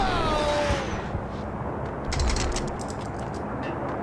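Gunshots crack at close range.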